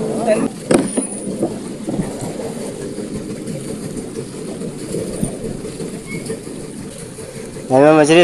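Water laps steadily against a small boat.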